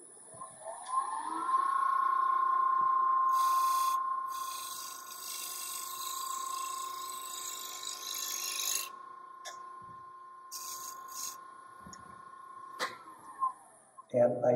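A wood lathe motor whirs up to speed, hums steadily, then winds down.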